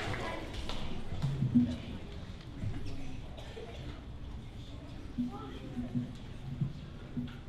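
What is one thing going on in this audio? Children chatter and murmur in a large echoing hall.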